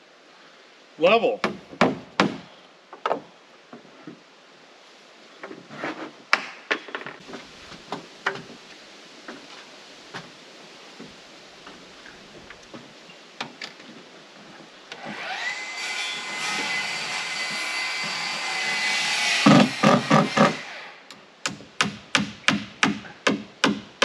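A hammer strikes wood in quick blows.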